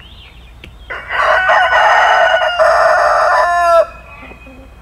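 A rooster crows loudly nearby.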